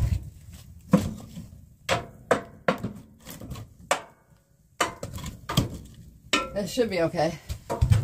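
A metal poker scrapes and clanks inside a stove.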